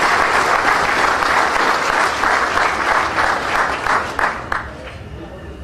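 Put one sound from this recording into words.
A crowd applauds in a room.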